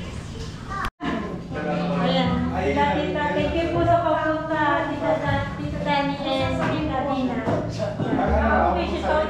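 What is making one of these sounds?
Several adults chat in the background.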